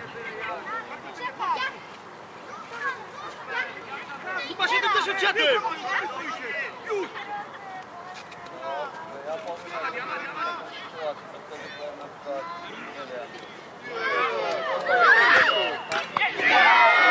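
Children shout and call out across an open field.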